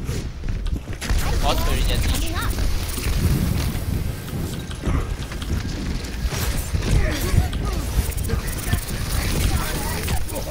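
Game explosions and impacts crackle and boom.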